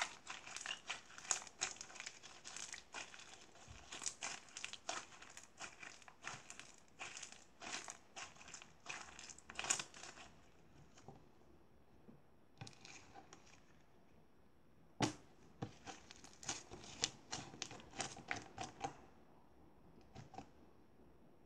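Sticky slime squelches and crackles as it is squeezed between hands.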